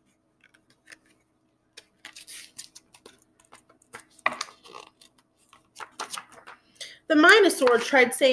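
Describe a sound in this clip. Book pages rustle and turn.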